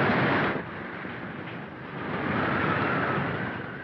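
Men's footsteps shuffle across a wooden floor.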